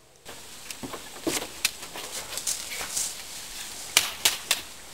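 Plastic toy swords clack together.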